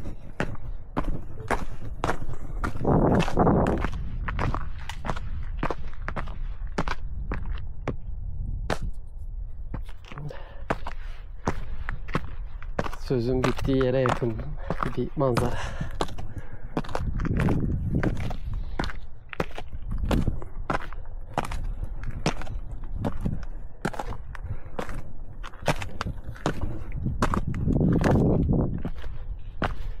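Footsteps crunch on a loose, stony path.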